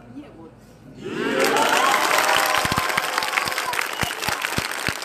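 A crowd of children cheers and shouts loudly.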